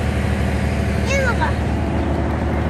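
A young girl exclaims close by.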